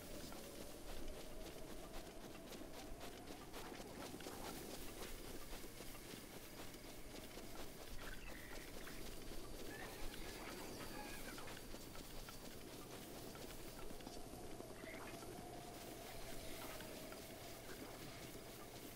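Quick footsteps rustle through tall grass.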